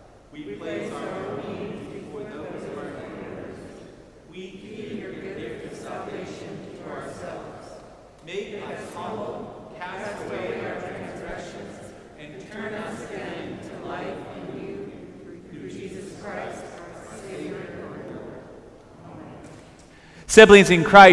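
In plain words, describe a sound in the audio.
A group of people read a prayer aloud together.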